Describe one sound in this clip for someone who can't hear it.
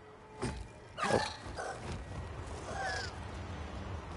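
A large flying creature shrieks overhead.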